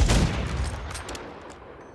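A gunshot booms with a short echo.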